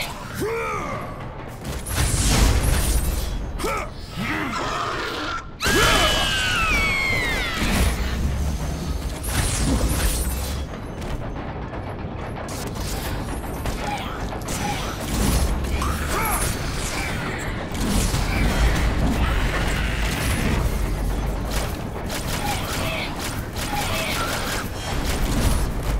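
Blades swing and strike enemies with sharp, repeated impacts.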